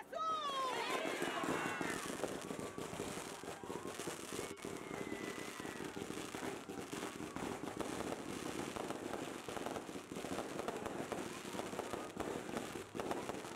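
Fireworks whoosh and crackle loudly.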